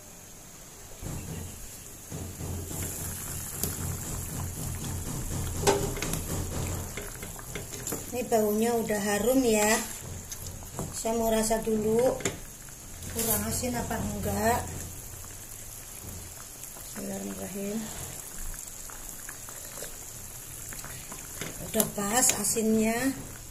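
A stew bubbles and simmers in a pan.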